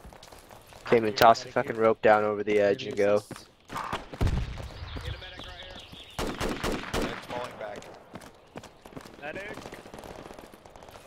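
Footsteps walk steadily over grass and pavement.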